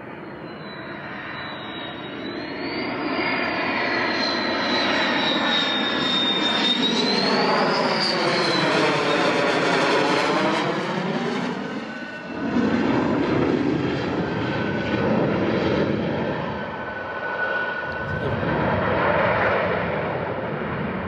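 A jet engine roars loudly overhead, its high whine rising and falling in pitch as the aircraft passes.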